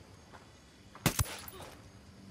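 A suppressed rifle fires a single sharp shot.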